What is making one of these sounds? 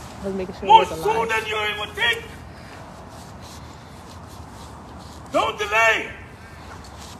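A man speaks loudly and with animation outdoors, close by.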